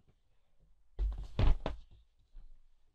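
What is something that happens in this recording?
A cardboard box rustles and scrapes.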